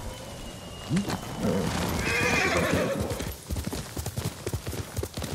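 A horse gallops with heavy hoofbeats.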